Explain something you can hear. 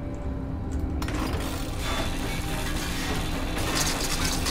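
A grinder screeches against metal.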